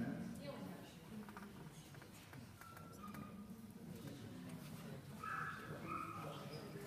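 Men and women chat quietly nearby in a large room.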